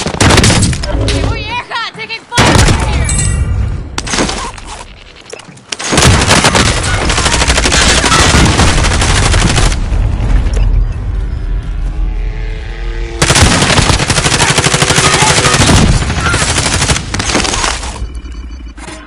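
Gunfire crackles in loud bursts.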